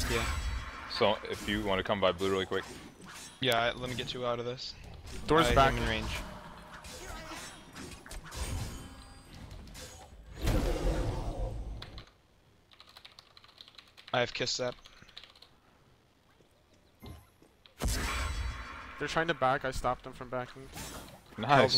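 Game fighting effects clash and burst.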